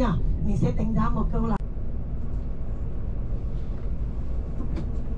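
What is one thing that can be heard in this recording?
A vehicle's engine rumbles low and steady while driving along a road.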